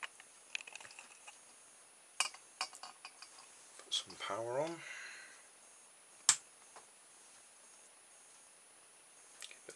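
A glass bottle clinks and knocks as it turns.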